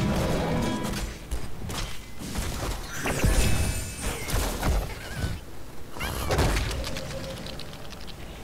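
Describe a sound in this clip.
Video game spell effects burst and crackle in quick succession.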